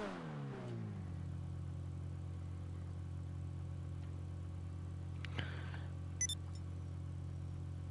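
A sports car engine idles.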